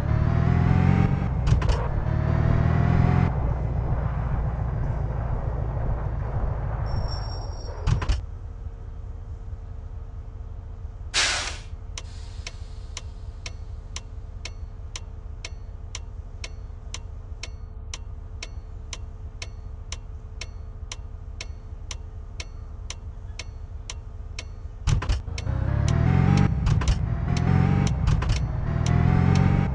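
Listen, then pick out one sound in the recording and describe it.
A bus engine rumbles and revs as the bus drives.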